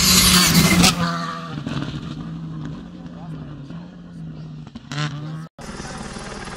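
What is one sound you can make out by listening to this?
A rally car's engine fades into the distance.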